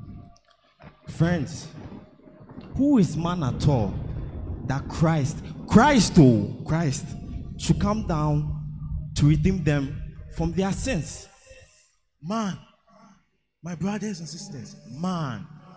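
A young man speaks with feeling into a microphone, heard through loudspeakers.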